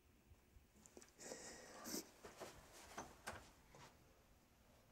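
A young woman sobs and gasps close by.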